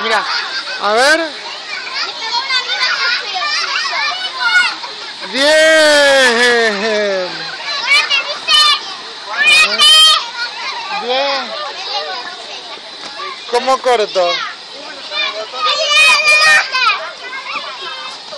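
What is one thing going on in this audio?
Young children shout and squeal excitedly close by.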